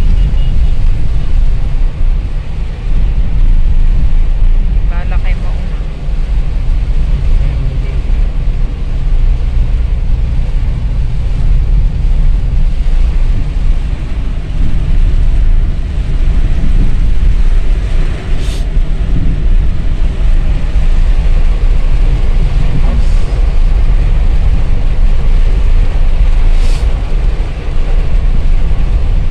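Heavy rain drums on a car's roof and windscreen.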